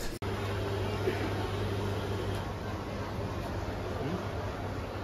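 A coffee machine hums steadily.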